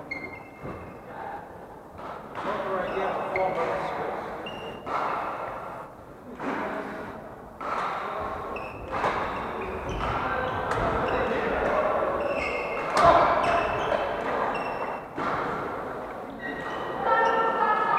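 Shuttlecocks are struck with sharp pops of rackets in a large echoing hall.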